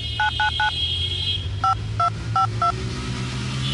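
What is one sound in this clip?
A smartphone keypad beeps with short dial tones as numbers are pressed.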